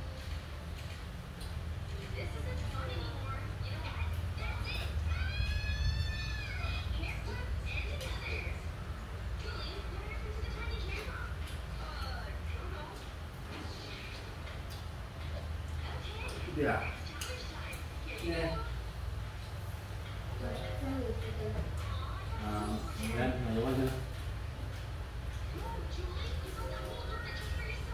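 Children talk and chatter nearby.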